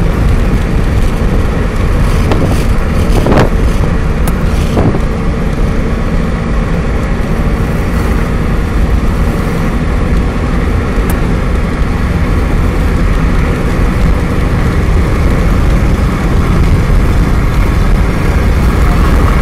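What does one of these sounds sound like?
A vehicle drives along a road with a steady loud rumble of engine and tyres.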